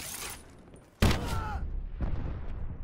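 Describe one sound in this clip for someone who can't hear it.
An explosion booms suddenly.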